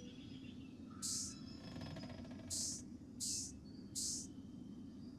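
A shimmering game chime sounds as a colour fills in.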